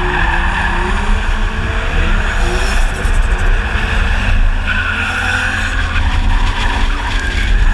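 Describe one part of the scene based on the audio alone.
A car engine roars and revs up and down close by.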